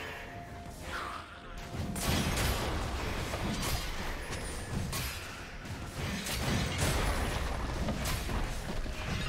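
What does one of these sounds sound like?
Game spell effects and weapon hits clash and burst rapidly in a fight.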